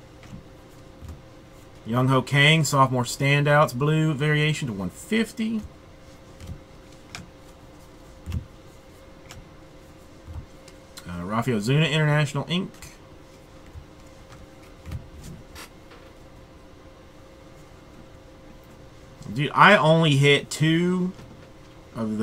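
Trading cards rustle and slap softly as they are sorted by hand.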